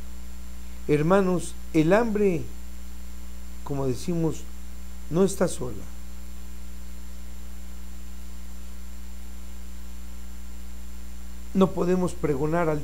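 A middle-aged man speaks calmly and slowly into a close microphone, with long pauses.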